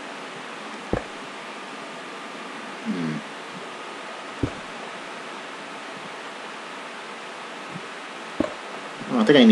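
Stone blocks thud softly as they are placed one after another.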